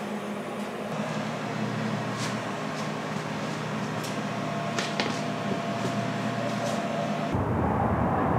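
Footsteps shuffle softly on a wooden floor.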